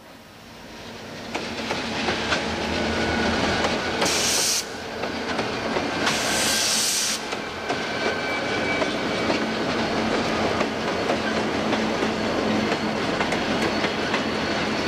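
Diesel locomotives rumble loudly past close by.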